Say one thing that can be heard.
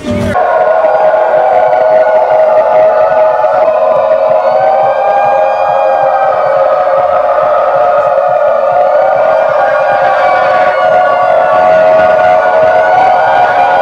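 Loud music plays through speakers.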